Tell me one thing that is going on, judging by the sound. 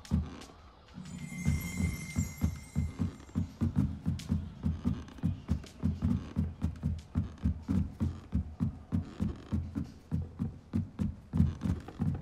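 Footsteps thud quickly on wooden stairs.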